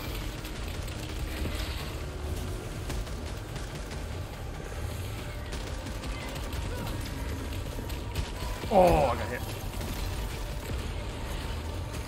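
Weapons fire and energy blasts crackle in a fight.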